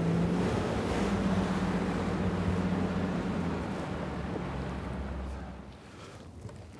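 An outboard motor roars.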